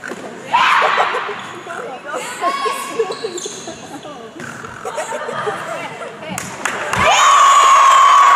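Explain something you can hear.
Teenage girls call out to each other during a volleyball rally.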